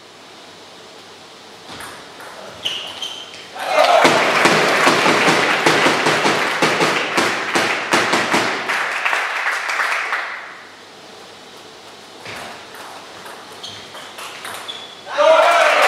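A table tennis ball clicks sharply against bats and the table.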